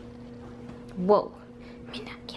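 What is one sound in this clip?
A cat meows loudly.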